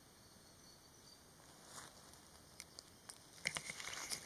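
An elephant steps slowly across soft dirt.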